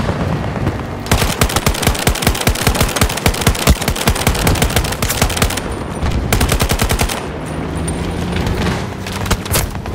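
A rifle fires in rapid bursts, loud and close.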